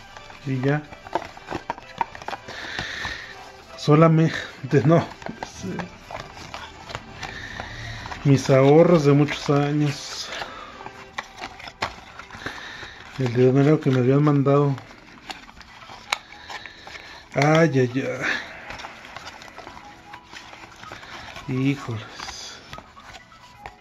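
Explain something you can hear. Stiff paper and cardboard rustle and scrape.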